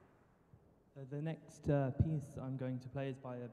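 A man speaks to an audience in a large echoing hall.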